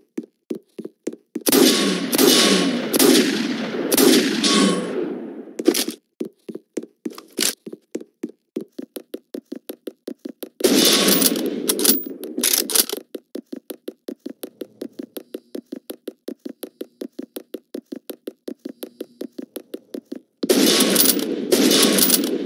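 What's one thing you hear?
Quick footsteps run steadily.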